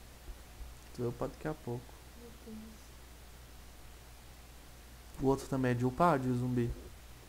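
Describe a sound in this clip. A man talks close to a microphone in short, lively bursts.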